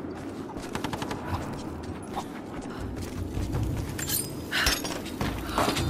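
Footsteps tread on stone.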